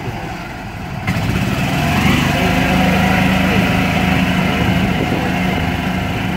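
A motor scooter's engine hums as it approaches along the road.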